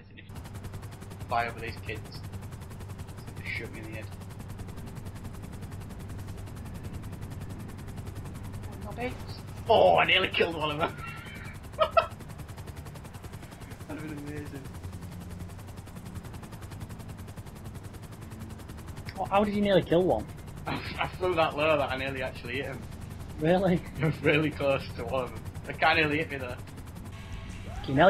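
A helicopter's rotor drones steadily overhead.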